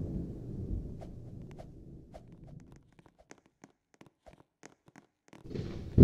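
Footsteps tap on a hard floor.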